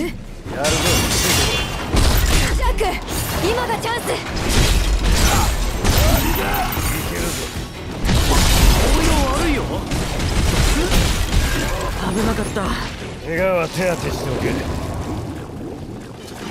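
Weapons clash and magic blasts crash loudly in a fight.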